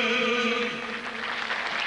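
A man sings into a microphone with band accompaniment.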